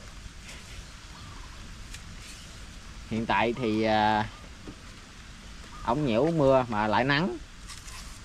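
Fibrous vegetable stalks snap and peel by hand.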